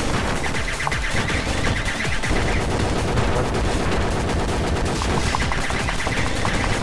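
Rapid gunfire rattles continuously.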